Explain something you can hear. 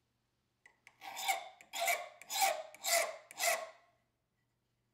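A file rasps against metal in quick strokes.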